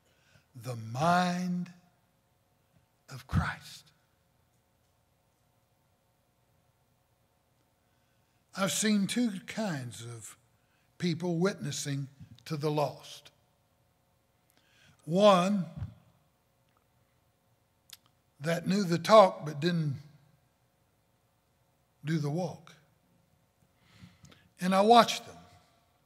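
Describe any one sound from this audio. An older man preaches with emphasis into a microphone, with long pauses between phrases.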